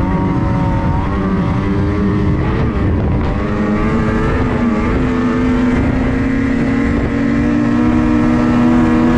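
A snowmobile engine roars loudly and close, its pitch rising and falling.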